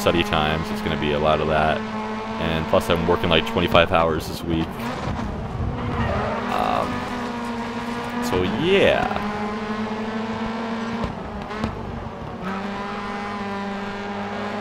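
A racing car engine roars and revs up and down between gear changes.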